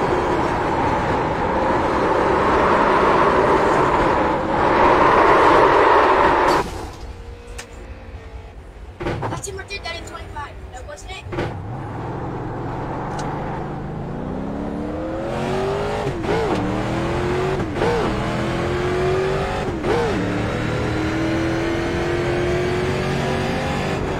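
A race car engine roars loudly, dropping off and then revving up through gear changes.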